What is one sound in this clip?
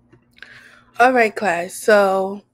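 A woman speaks with animation, close to a microphone over an online call.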